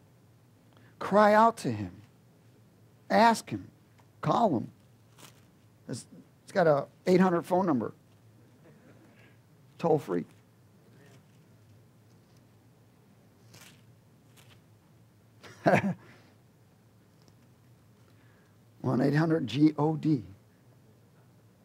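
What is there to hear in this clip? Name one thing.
A middle-aged man speaks slowly and calmly into a headset microphone, with long pauses.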